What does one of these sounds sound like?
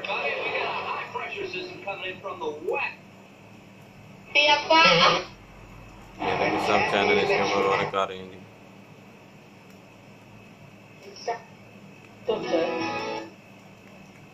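Short bursts of television sound play through a small loudspeaker, cutting in and out.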